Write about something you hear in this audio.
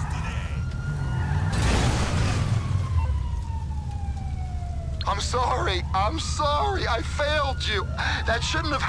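A fire roars on a crashed jet's wreck.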